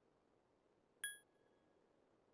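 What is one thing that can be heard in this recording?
A short electronic chime sounds once.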